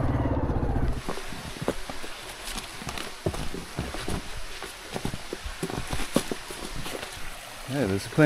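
Footsteps crunch on dry leaves and stones.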